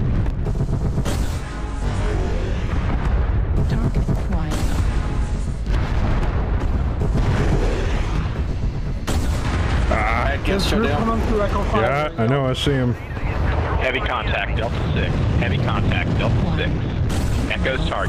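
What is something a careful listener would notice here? Laser weapons fire in a game.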